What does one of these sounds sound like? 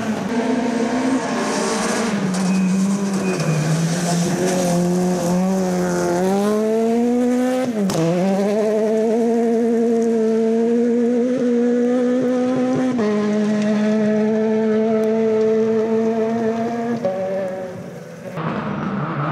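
A rally car engine roars and revs hard as it speeds past on gravel.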